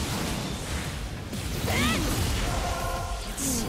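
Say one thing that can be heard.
A blade slashes through flesh with a wet splatter.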